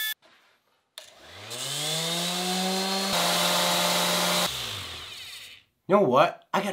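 An electric sander spins up, runs steadily, then winds down.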